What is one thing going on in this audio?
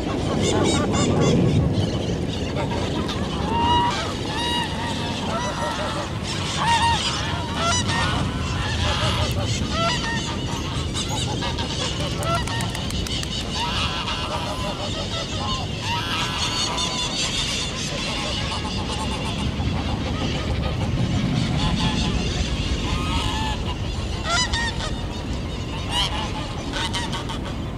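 A flock of domestic geese honks.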